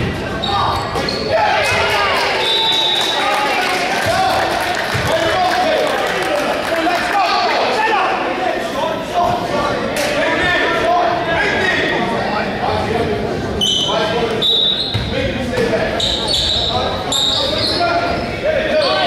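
A crowd of young people and adults chatter and call out loudly in a large echoing gym.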